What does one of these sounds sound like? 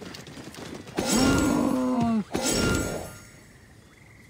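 A camel groans loudly.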